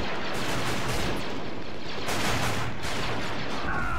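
A grenade explodes with a loud bang.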